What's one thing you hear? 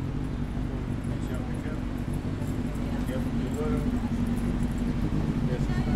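Adults chat nearby at outdoor tables.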